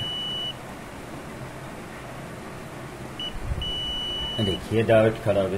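A multimeter beeps in short and long steady tones.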